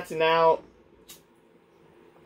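A lighter clicks once.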